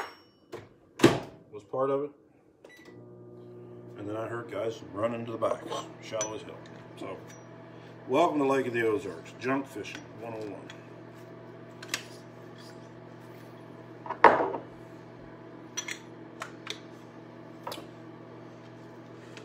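Metal parts clink and click as they are handled.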